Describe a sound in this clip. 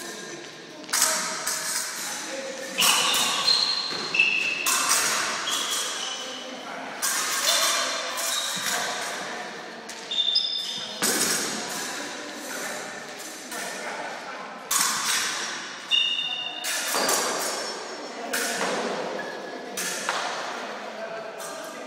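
Fencing blades clash and ring sharply in a large echoing hall.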